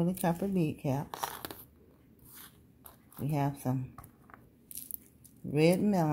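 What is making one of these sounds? Small beads click softly against each other.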